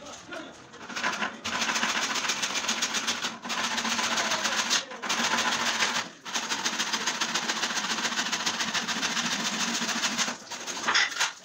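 A hand file rasps rapidly back and forth on wood.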